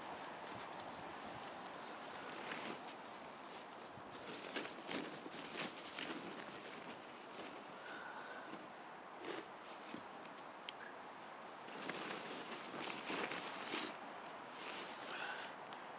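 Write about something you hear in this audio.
A tarp rustles and crackles as a man crawls under it.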